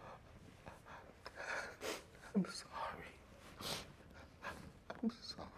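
An elderly man speaks quietly through tears.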